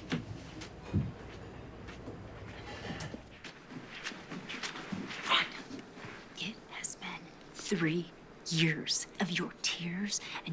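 A woman speaks into a microphone, close and tense.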